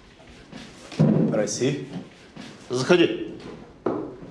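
A man answers from across a room.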